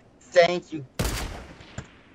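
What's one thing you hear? A sniper rifle shot cracks loudly.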